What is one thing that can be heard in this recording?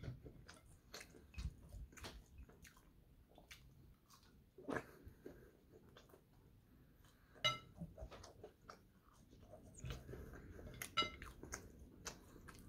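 A young man chews food noisily close by, with wet smacking sounds.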